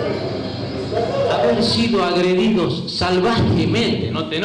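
A man speaks loudly and forcefully into a microphone, heard through loudspeakers in an echoing hall.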